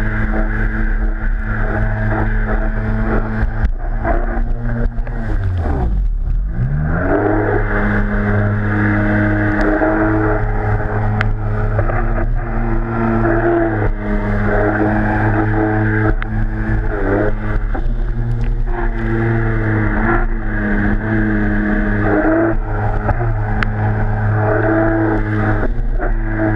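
A jet ski engine roars loudly, rising and falling in pitch.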